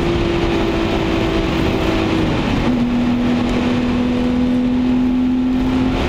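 Wind rushes past the car.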